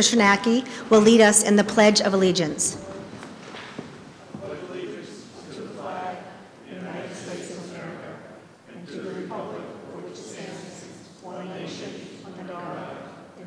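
A woman speaks in a large echoing hall.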